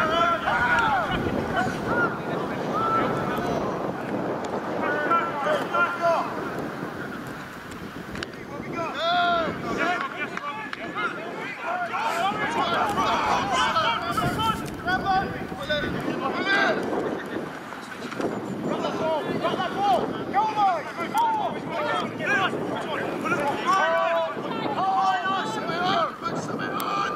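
Young women shout to each other outdoors across an open field.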